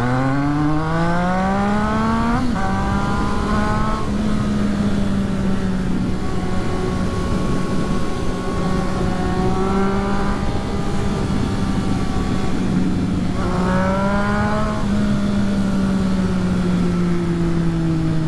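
A motorcycle engine revs up through the gears, then hums steadily.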